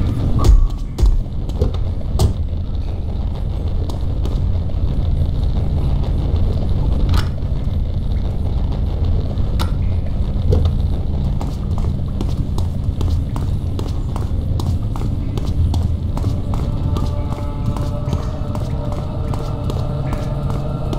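Footsteps echo on a concrete floor.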